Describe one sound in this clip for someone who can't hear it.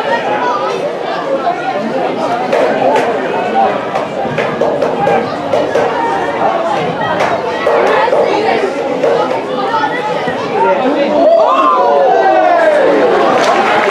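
Football players shout to one another across an outdoor pitch.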